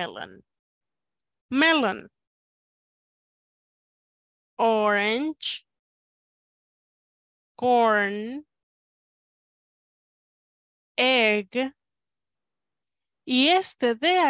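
A woman speaks single words slowly and clearly over an online call, pausing between them.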